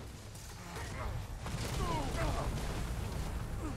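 A magic blast crackles and roars.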